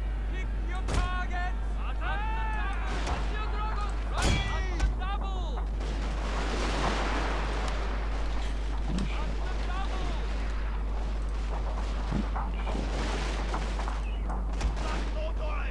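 Muskets fire in rapid volleys.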